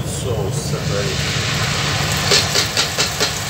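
Tomato sauce glugs and splatters as it is poured from a can into a hot pan.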